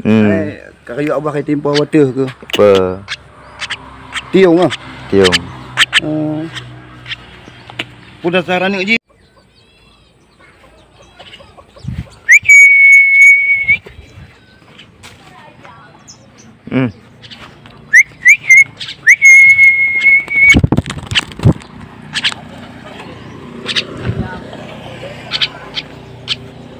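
A bird chirps close by.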